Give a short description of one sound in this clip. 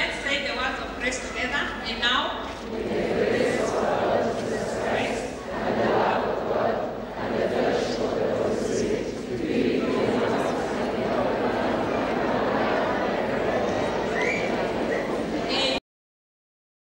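A woman speaks with animation into a microphone through loudspeakers in an echoing hall.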